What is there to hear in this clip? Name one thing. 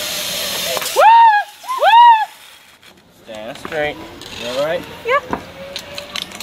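A young woman shrieks and laughs excitedly close by.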